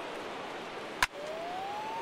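A wooden baseball bat cracks against a ball.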